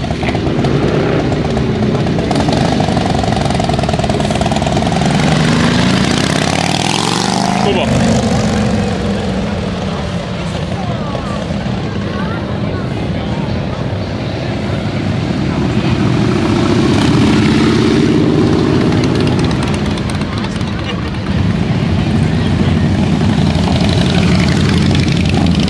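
Motorcycle engines rumble loudly as bikes ride past close by.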